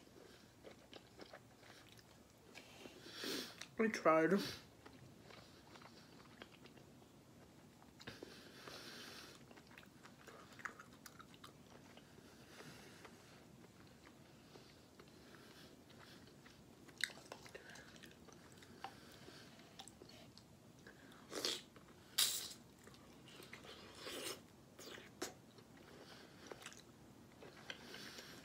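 A young woman chews and slurps fruit close to a microphone.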